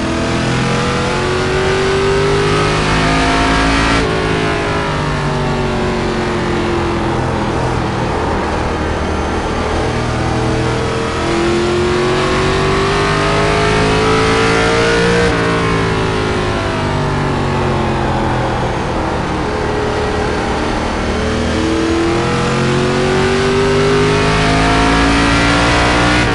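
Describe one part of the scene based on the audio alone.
A race car engine roars, its pitch rising as it speeds up and falling as it slows for corners.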